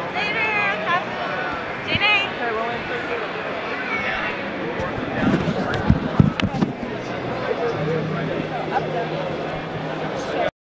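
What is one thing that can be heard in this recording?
A crowd murmurs in a large echoing hall.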